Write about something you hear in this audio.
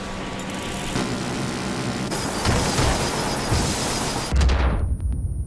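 Metal scrapes and crashes harshly.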